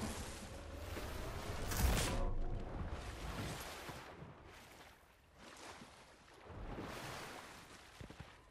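Water splashes and gurgles as a swimmer moves through it.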